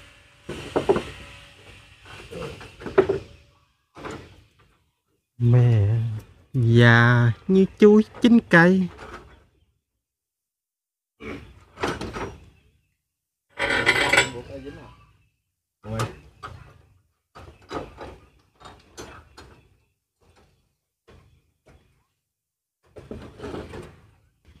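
A trowel scrapes and taps on brick.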